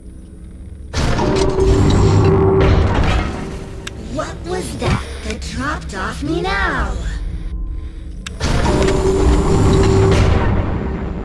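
A loud, harsh shriek blares suddenly.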